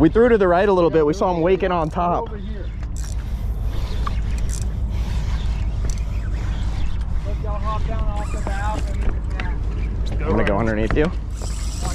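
A fishing reel whirs as it is wound in.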